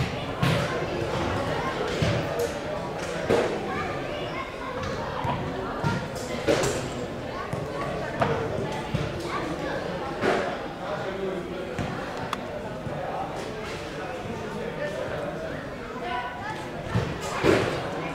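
Young children chatter and call out nearby in an open space.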